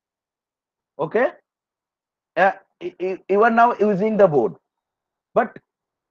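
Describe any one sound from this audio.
A young man speaks calmly over an online call.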